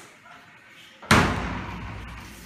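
A hand knocks hard on a door.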